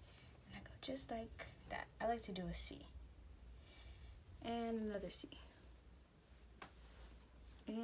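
A makeup brush brushes softly against skin.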